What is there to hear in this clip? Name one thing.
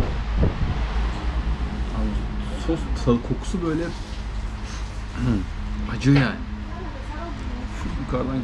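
A spoon scrapes and clinks on a plate.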